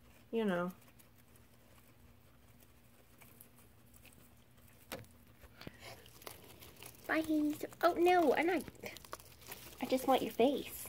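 A guinea pig squeals in high, rising and falling whistles close by.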